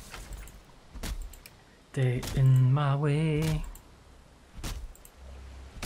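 An axe chops into a tree trunk with dull thuds.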